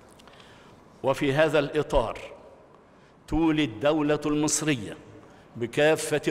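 An elderly man speaks calmly and formally through a microphone in a large echoing hall.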